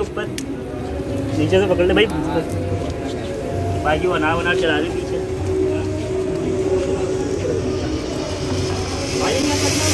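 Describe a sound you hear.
Sparklers fizz and crackle.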